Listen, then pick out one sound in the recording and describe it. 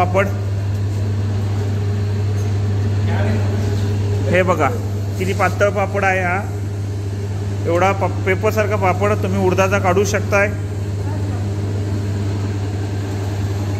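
A machine hums steadily with a low drone.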